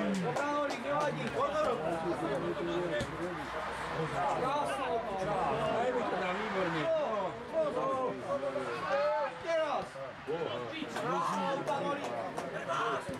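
Men talk close by with animation.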